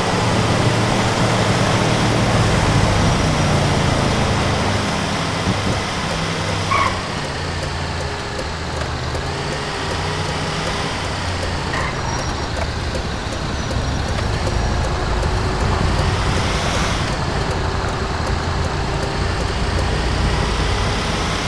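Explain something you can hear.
A heavy truck engine rumbles steadily as it drives along.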